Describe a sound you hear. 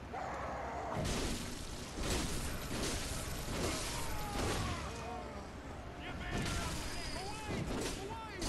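A blade slashes and strikes flesh.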